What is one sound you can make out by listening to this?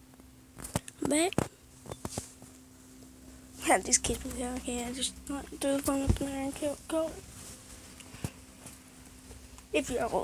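A young boy talks close to a phone microphone, with animation.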